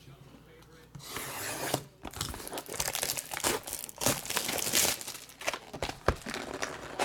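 Plastic wrap crinkles and tears as a box is unwrapped.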